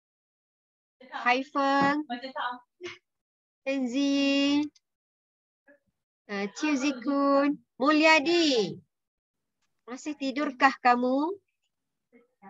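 A young person speaks with animation over an online call, in bursts with pauses.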